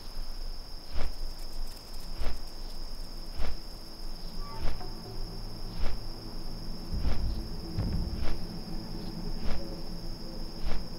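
Large leathery wings beat with regular whooshing thumps.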